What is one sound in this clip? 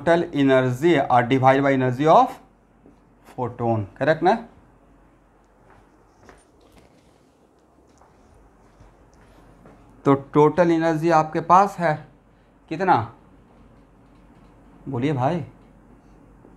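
A man speaks calmly and clearly, pausing often.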